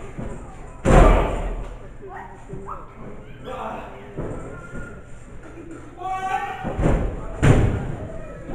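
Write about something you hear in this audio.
A wrestler crashes onto a ring mat with a loud thud.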